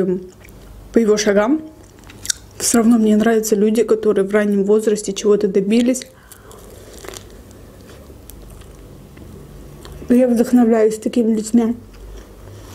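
A young woman talks softly and close to a microphone.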